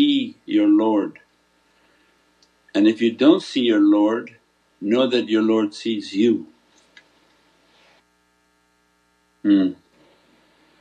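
An elderly man speaks calmly into a close microphone, with pauses.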